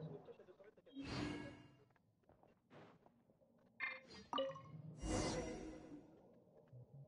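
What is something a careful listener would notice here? A shimmering magical whoosh swells and fades.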